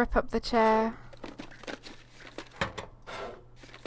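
Small objects rattle and knock as a drawer is rummaged through.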